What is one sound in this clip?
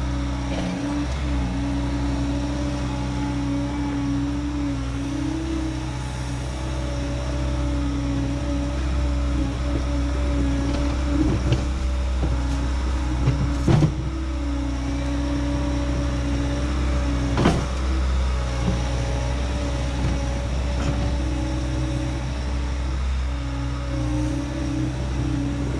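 A compact loader's diesel engine rumbles and whines steadily close by.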